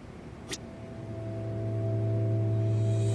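A record plays soft music.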